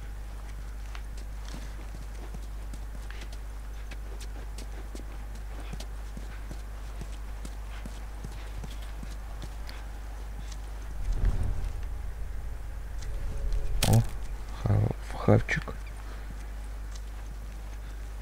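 Footsteps shuffle softly over a gritty floor.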